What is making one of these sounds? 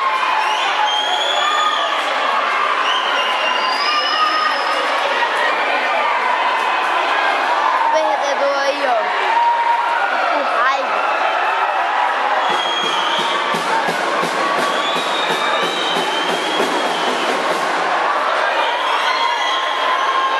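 A large crowd of people cheers and chatters in the distance.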